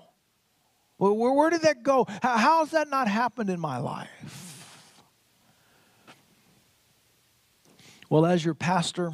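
A middle-aged man speaks with animation into a headset microphone in a large echoing hall.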